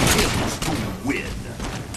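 A large explosion booms up close.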